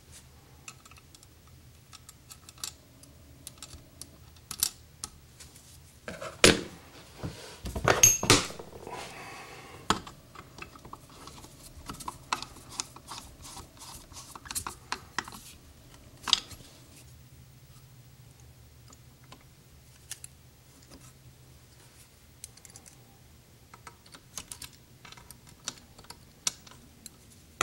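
Small metal parts click and tap against a metal carburetor body.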